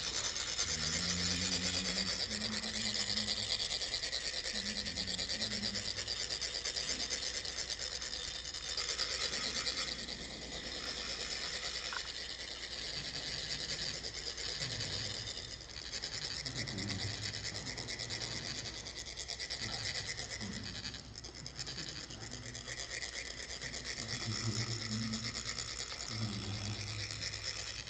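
Metal funnels rasp with a steady, fine scraping.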